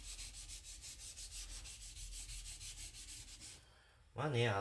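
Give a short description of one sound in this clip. A blade scrapes back and forth on a wet whetstone in a quick, steady rhythm.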